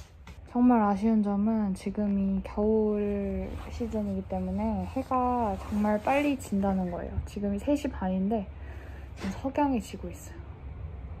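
A young woman speaks calmly and close by, her voice slightly muffled.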